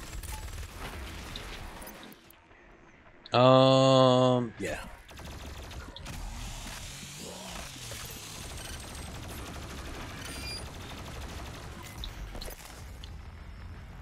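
Heavy gunfire and explosions boom and crackle.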